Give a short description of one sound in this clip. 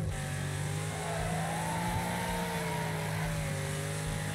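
Tyres skid and squeal on loose ground.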